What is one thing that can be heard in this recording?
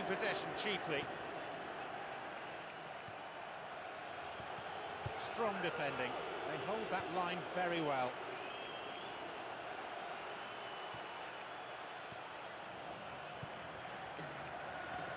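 A large crowd murmurs and roars steadily in a stadium.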